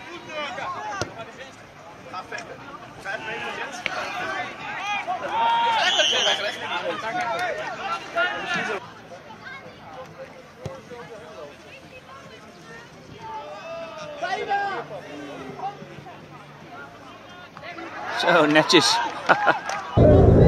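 Young players shout to each other across an outdoor field.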